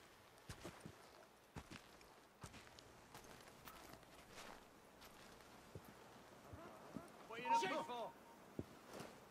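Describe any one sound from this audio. Soft footsteps crunch on snow.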